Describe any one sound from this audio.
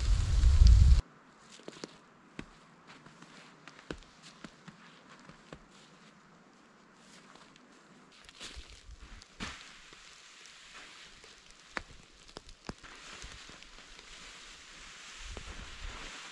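Snow and wind rustle through trees outdoors.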